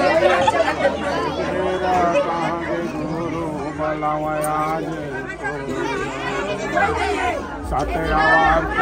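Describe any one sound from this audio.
A crowd of men sings a chant together nearby.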